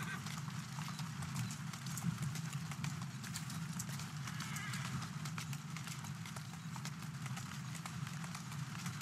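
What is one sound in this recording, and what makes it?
Wooden carriage wheels rattle and clatter over cobblestones.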